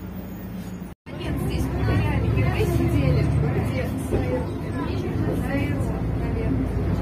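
A bus drives along a road with a loud, rumbling roar.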